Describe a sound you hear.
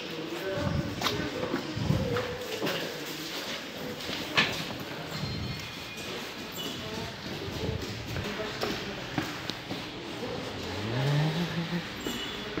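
Footsteps tap on a hard floor and stairs.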